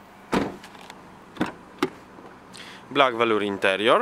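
A car door opens with a click.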